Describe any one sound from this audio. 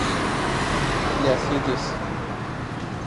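A car drives past on the road.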